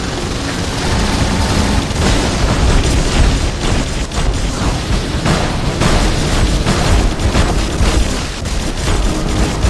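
Large metal robots stomp and clank with heavy footsteps.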